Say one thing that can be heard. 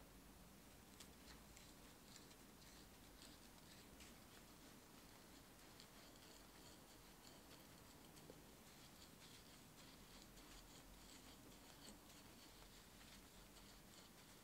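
A screwdriver scrapes as it turns a screw.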